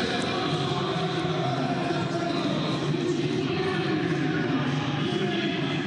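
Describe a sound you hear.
A large stadium crowd chants and sings steadily in the distance.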